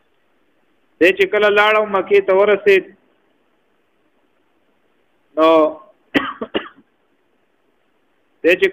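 A man speaks slowly and clearly in short phrases with long pauses between them.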